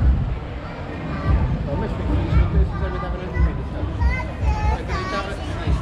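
Several people nearby talk in passing.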